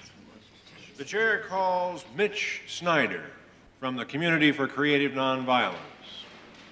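An elderly man speaks calmly into microphones.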